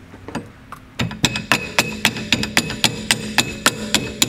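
A hand tool clicks rapidly against metal.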